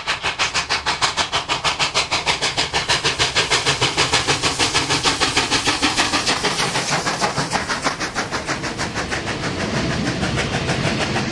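A steam locomotive chuffs in fast, sharp beats as it works hard past close by.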